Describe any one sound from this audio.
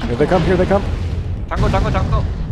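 A laser weapon fires with a sharp, buzzing blast.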